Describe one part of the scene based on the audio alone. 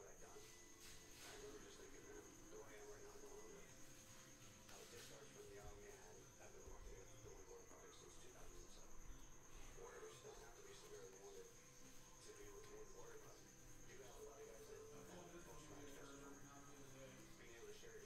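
Trading cards shuffle and flick against each other.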